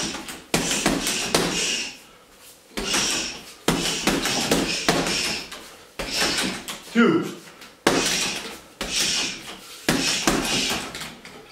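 Punches and kicks thud against a heavy bag.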